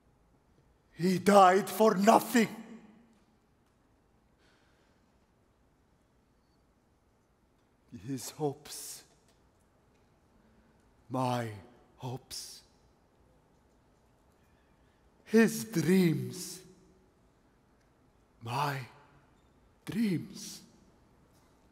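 A man sings and speaks dramatically in short phrases through a headset microphone.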